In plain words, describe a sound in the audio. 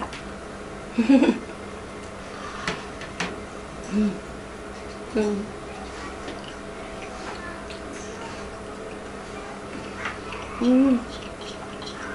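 A woman hums with pleasure while chewing.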